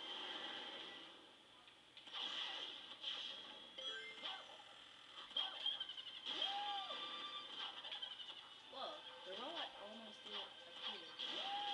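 Fast video game sound effects whoosh and chime, heard from a television in a room.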